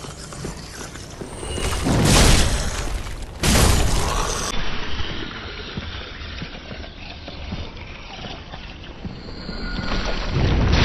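Armoured footsteps run across stone.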